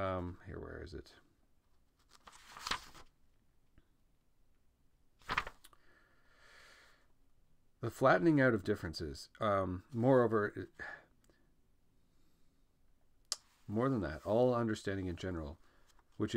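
A young man speaks calmly and close by, with pauses.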